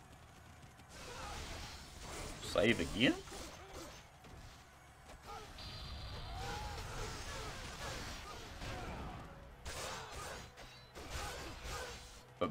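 Swords clash and slash.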